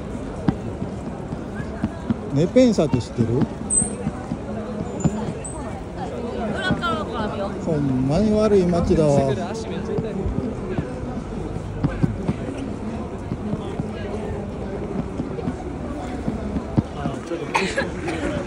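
A crowd of people chatters and walks about outdoors.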